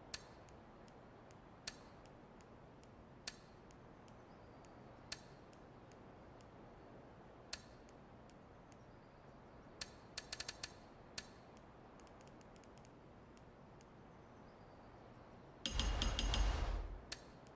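Buttons click sharply, one press at a time, at an uneven pace.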